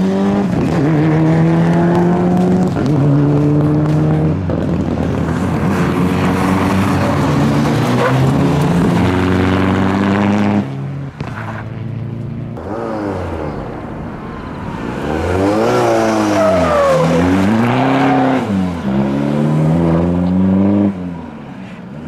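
A rally car engine revs hard and shifts through gears as it races past.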